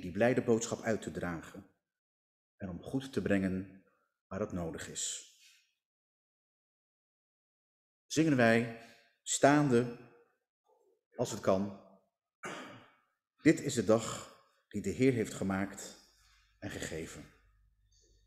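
A man speaks calmly into a microphone, reading out in an echoing room.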